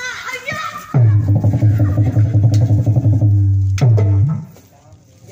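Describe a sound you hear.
A hand drum is beaten quickly and loudly.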